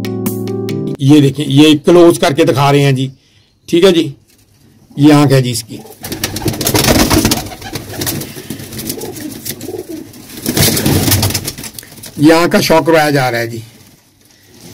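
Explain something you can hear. A pigeon coos softly close by.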